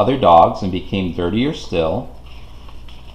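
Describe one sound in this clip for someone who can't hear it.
A man reads aloud close by, with animation.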